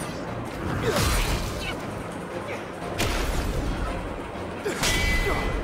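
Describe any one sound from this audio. Blades whoosh as weapons swing.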